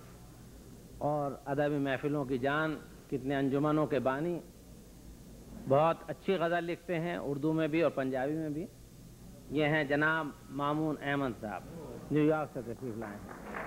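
An elderly man speaks steadily into a microphone, in short phrases with pauses.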